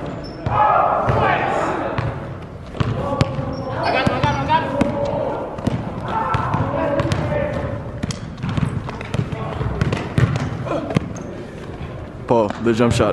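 A basketball bounces on a hard court, echoing in a large hall.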